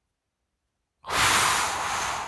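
Packaging rustles as a controller is pulled from a box.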